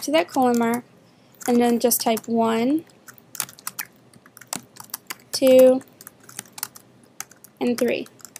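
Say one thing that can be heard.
Keys click on a computer keyboard in short bursts.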